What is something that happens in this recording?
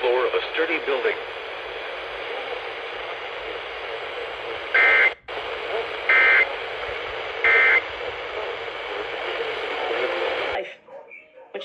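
A radio hisses with static from a small speaker.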